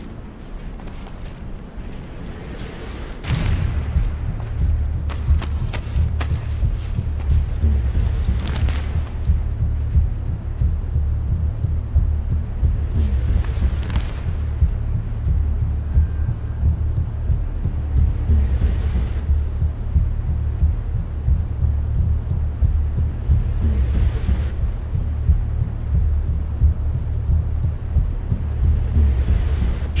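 Soft footsteps tap on a stone floor.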